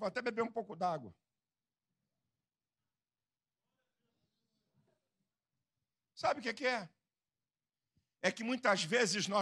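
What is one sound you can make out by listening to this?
A middle-aged man speaks with animation into a microphone, heard through a loudspeaker, in short bursts with pauses.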